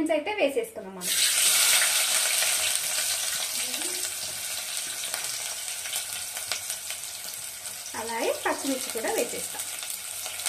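Chopped onions sizzle and hiss loudly in hot oil.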